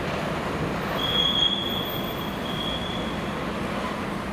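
Metal wheels squeal against the rails.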